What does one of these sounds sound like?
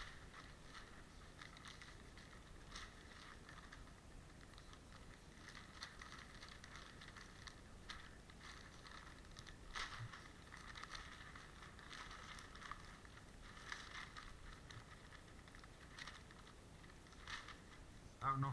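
Newspaper rustles and crinkles as it is unwrapped close by.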